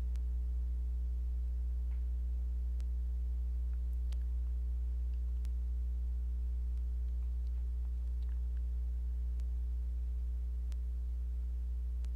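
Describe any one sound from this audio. A metal crochet hook clicks and rubs softly through yarn.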